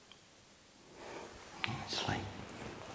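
A man speaks quietly nearby.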